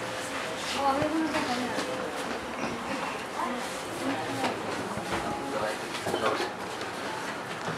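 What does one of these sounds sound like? A microphone stand knocks and rattles as it is adjusted.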